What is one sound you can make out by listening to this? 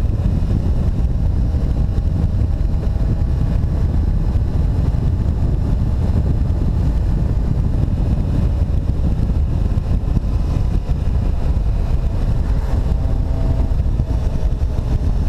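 Wind rushes and buffets past a motorcycle's microphone.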